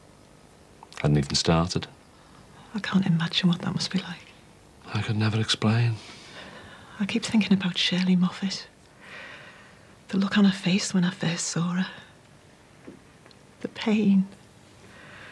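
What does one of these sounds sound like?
A woman speaks calmly and seriously, close by.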